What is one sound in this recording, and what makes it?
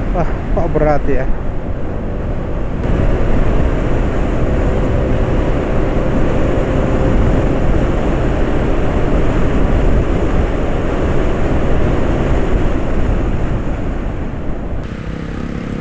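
A motorbike engine hums steadily as it rides along.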